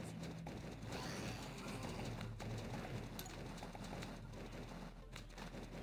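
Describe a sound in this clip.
Game peas pop and thud rapidly against zombies.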